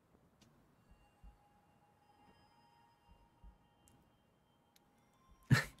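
Soft, high chiming tones ring out and hold.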